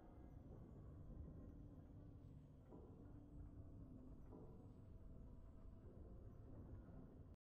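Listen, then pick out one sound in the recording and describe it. A triumphant game fanfare plays with deep rumbling tones.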